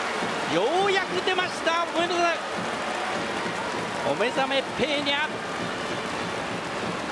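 A large crowd cheers and roars in a big echoing stadium.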